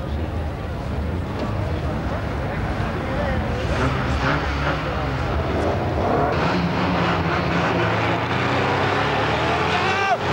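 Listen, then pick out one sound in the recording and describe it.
Many car engines idle and rev loudly.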